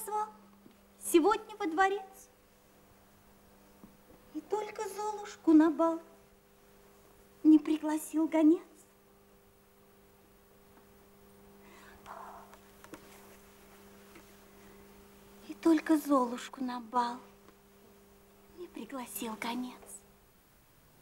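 A young woman talks in bursts close by, playfully and with feeling.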